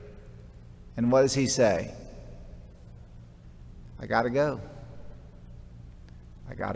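A middle-aged man speaks calmly through a microphone in a large echoing hall, with long pauses.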